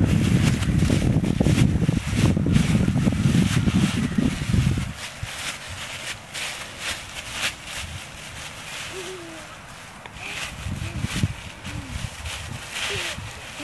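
Dry leaves rustle and crunch underfoot.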